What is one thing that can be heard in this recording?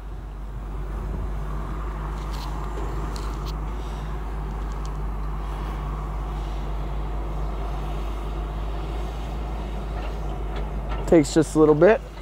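An electric convertible roof motor hums steadily as the roof folds down.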